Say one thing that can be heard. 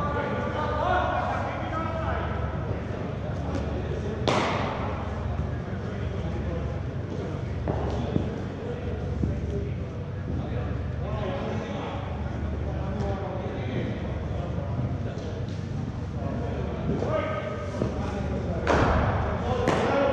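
People's voices echo around a large indoor hall.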